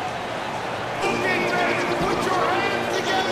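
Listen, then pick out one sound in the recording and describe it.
Music plays over arena loudspeakers.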